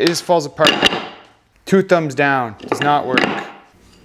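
Pieces of wood knock against a wooden bench.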